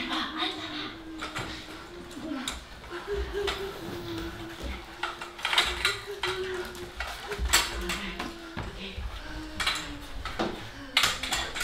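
A woman sobs and cries out in distress.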